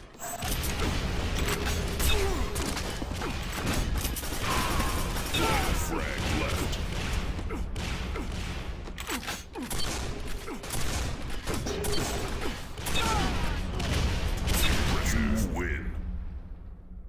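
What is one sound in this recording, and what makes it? Gunfire blasts and explosions boom in quick bursts.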